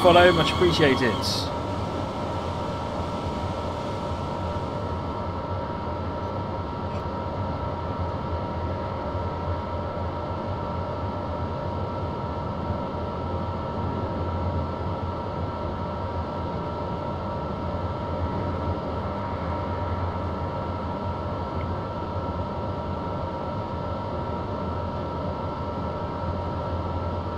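Train wheels rumble steadily on the track.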